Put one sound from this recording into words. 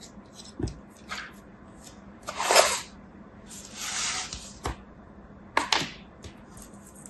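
Hands rustle and pat through a pile of clay pieces.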